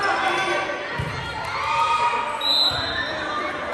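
A volleyball is struck with a thump.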